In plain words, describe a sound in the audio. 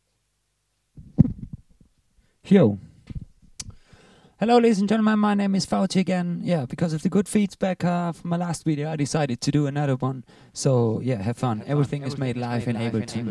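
A young man beatboxes into a microphone up close.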